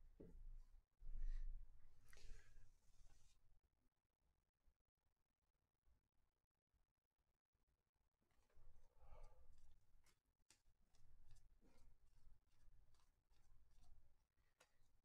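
Trading cards shuffle and slide softly against each other in a pair of hands.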